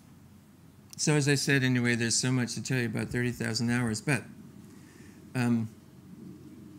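An older man speaks calmly into a microphone, with long pauses.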